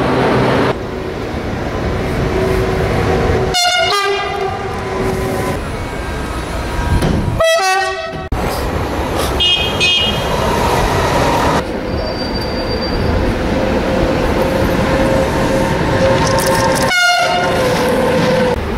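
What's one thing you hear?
A freight train rumbles past on the rails.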